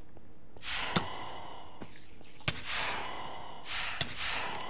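A weapon strikes a creature with sharp hits.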